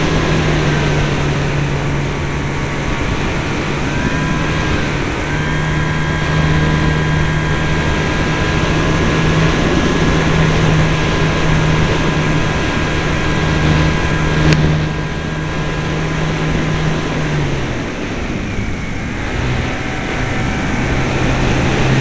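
Wind rushes loudly past the model plane.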